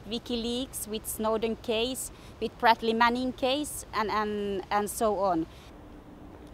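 A woman speaks with feeling, close to a microphone.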